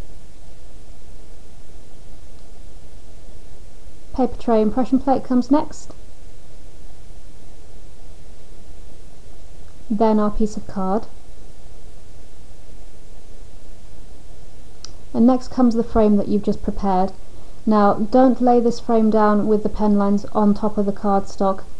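Sheets of paper and card rustle as they are handled.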